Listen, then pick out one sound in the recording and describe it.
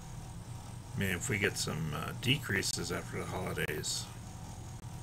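A man speaks calmly through a webcam microphone on an online call.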